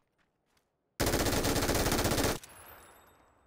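A rifle fires a rapid automatic burst in a video game.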